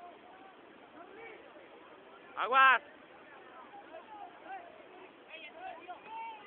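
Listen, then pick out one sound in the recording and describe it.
Young people chatter and call out nearby outdoors.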